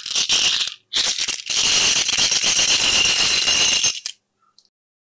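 Crunchy beads and glitter rustle and crackle as fingers stir them.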